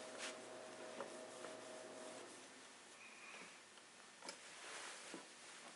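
A cloth rubs and squeaks against a plastic casing.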